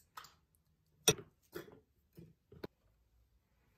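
A metal spoon clinks against a ceramic bowl while stirring.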